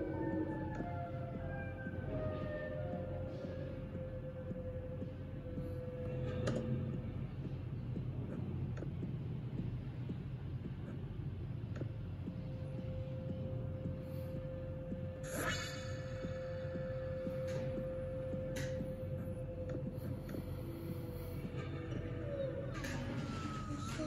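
Music with a steady held note plays from a tablet's speaker.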